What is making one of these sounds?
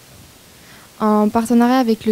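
A woman speaks into a microphone in a large room.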